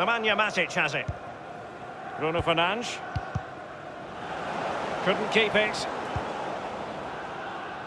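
A large stadium crowd murmurs and cheers steadily in the distance.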